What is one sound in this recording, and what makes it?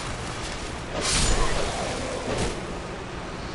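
A sword swings and strikes with a sharp clash.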